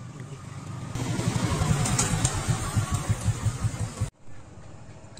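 A motorcycle engine roars as it rides past.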